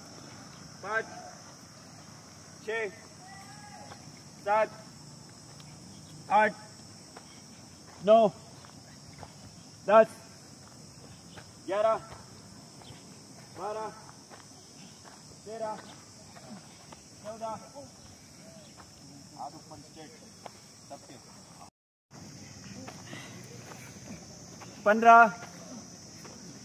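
A group of young men shout counts in unison outdoors.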